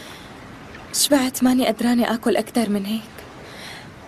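A young woman speaks up close.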